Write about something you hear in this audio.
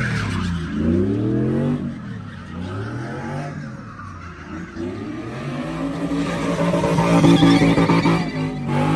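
A car engine revs hard, its pitch rising and falling again and again.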